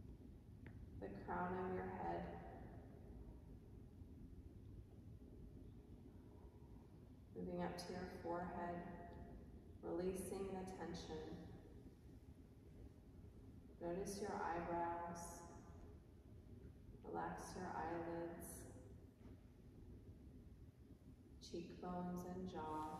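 A young woman sings short phrases nearby, with pauses between them.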